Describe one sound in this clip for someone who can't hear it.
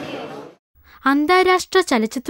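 A young woman speaks clearly into a handheld microphone.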